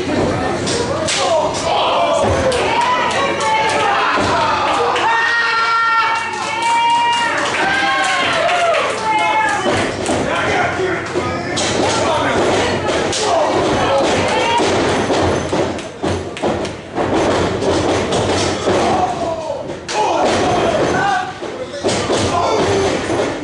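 Wrestlers' bodies thud and slap on a ring's canvas.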